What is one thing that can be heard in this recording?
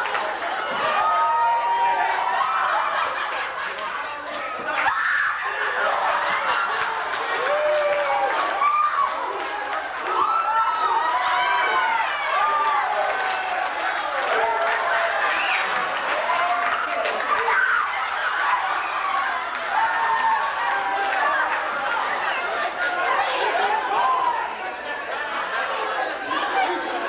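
A young woman speaks in an echoing room.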